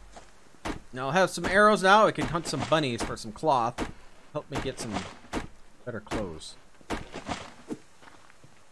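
An axe chops into a tree trunk with sharp knocks.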